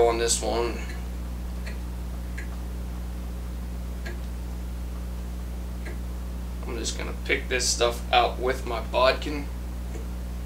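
A man speaks calmly, close to the microphone.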